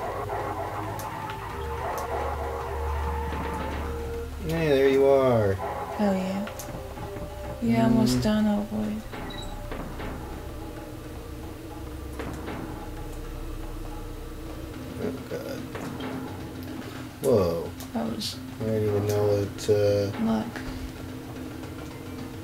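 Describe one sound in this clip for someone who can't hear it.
Video game music plays steadily throughout.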